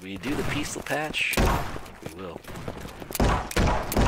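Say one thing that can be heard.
Toy-like gunshots pop in quick succession.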